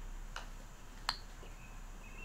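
A golf club strikes a ball with a sharp smack.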